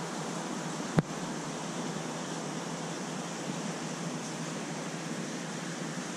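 A stream of air bubbles rises and gurgles through fish tank water.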